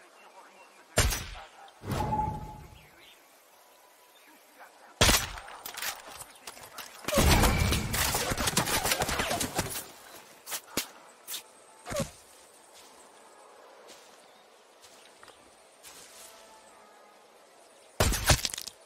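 A rifle fires a loud, sharp shot.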